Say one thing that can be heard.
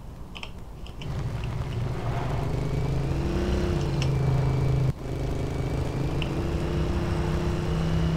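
A quad bike engine rumbles steadily as it drives over rough ground.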